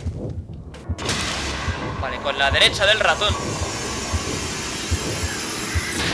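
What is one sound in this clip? A loud electronic rushing whoosh surges and keeps roaring.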